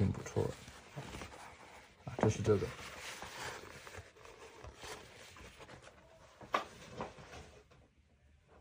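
Stiff paper rustles and crinkles as a scroll is rolled up by hand.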